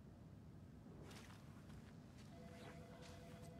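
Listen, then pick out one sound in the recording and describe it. Footsteps tap on a hard tiled floor in an echoing room.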